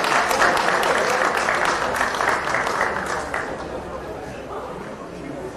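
A brass band plays loudly outdoors, with sharp accented beats, then softens.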